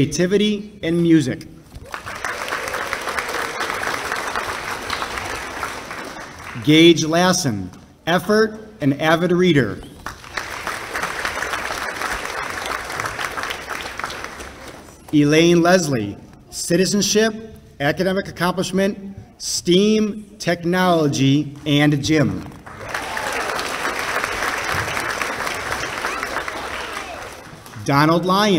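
A man reads out names calmly through a microphone in a large echoing hall.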